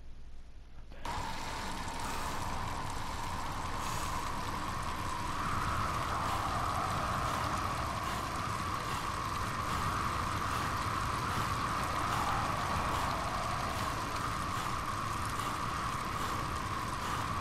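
Bicycle tyres hum steadily on a smooth road.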